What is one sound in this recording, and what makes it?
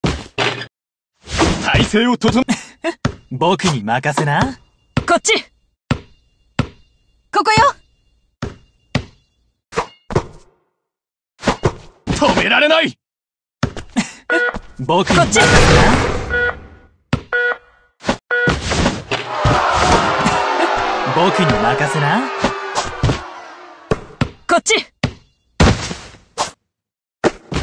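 A basketball bounces on hard ground.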